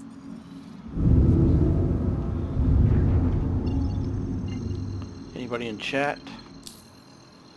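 A spaceship's engine rumbles loudly, then slowly fades.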